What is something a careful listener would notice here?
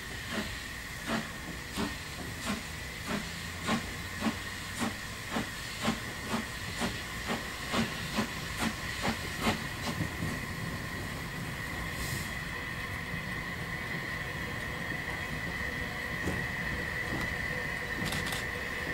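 Steel wheels squeal and rumble on the rails.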